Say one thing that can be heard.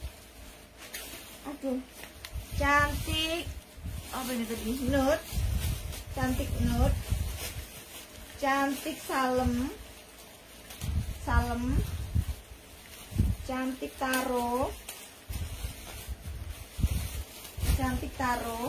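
Clothes hangers rustle and clack as garments are handled.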